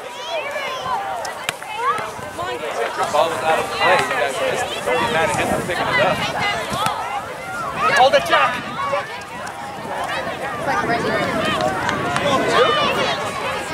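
A ball thumps as it is kicked.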